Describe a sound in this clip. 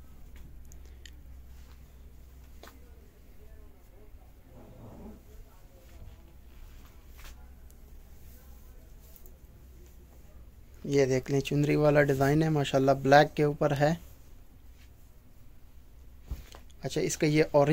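Cloth rustles softly as it is moved and unfolded.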